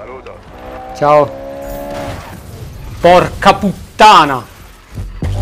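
A young man shouts out loudly.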